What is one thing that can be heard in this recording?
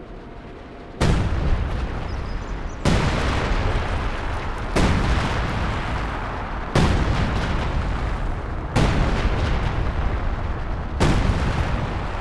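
Artillery shells explode heavily, one after another.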